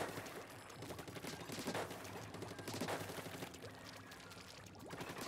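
Ink splatters wetly in quick bursts.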